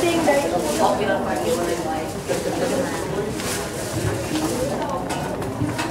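A young woman speaks with animation into a microphone through a loudspeaker.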